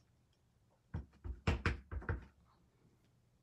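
A rubber stamp dabs against an ink pad with soft thumps.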